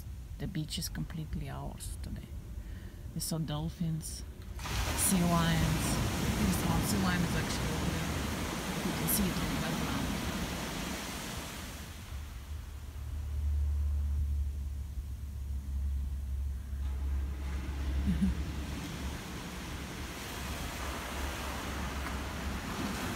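Waves break and wash up on a beach close by.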